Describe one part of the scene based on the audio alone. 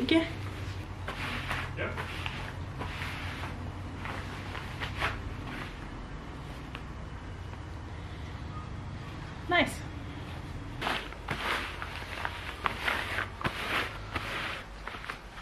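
Rubber gloves rub and brush over a fabric cushion.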